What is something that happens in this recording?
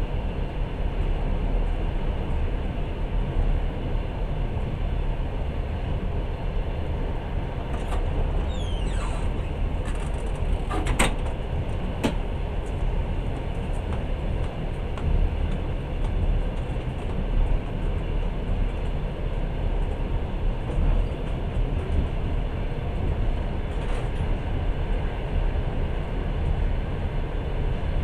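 A vehicle engine rumbles steadily while driving along a rough track.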